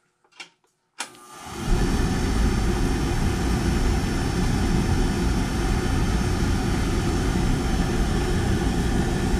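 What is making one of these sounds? An oil burner ignites with a sudden whoosh and roars steadily.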